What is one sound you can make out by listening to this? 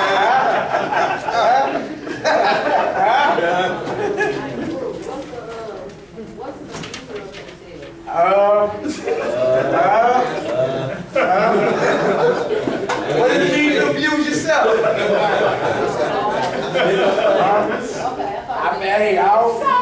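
A man speaks with animation to a room, his voice echoing slightly.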